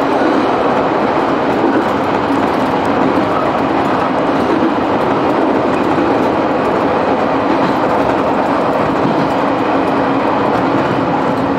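A passing train roars by close outside.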